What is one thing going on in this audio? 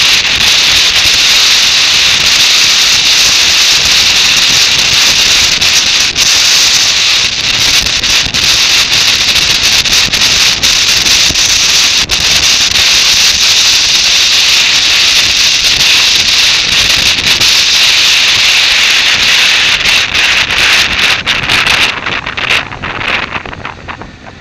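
Strong wind roars loudly across a microphone on a moving motorbike.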